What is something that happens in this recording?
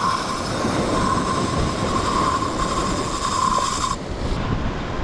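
A fishing reel whirs as line is spun.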